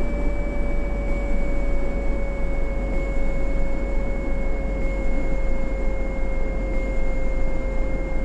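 A bus engine hums steadily with a whining drone as it drives along the road.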